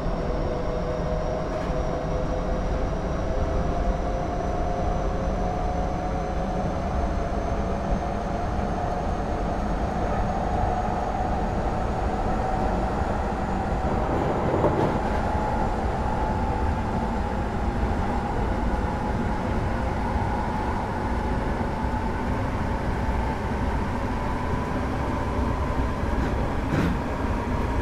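An electric train motor whines, rising slowly in pitch as the train speeds up.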